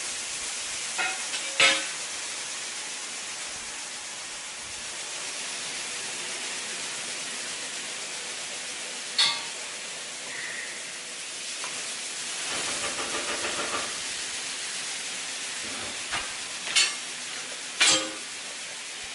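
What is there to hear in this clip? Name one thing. Hard objects knock and clatter sharply now and then.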